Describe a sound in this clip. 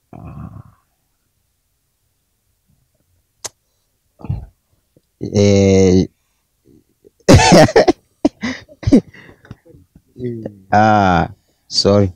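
A young man speaks with animation into a close microphone, with short pauses.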